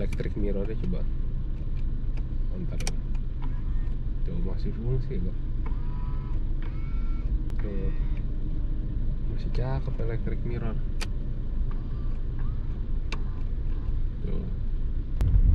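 A young man talks calmly close by, inside a car.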